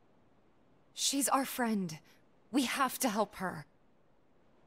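A woman speaks with a wry tone.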